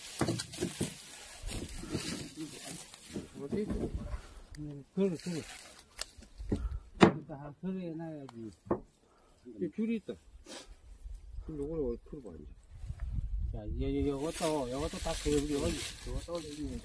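Dry leaves rustle as a heavy carcass is shifted on the ground.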